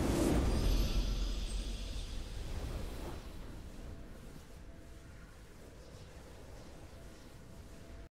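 A triumphant victory chime rings out and fades.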